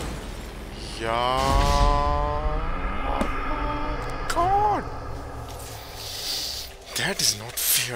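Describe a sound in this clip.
A young man exclaims loudly into a headset microphone.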